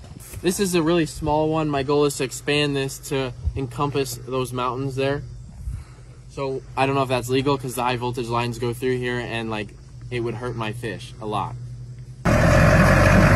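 A young man talks close by, calmly.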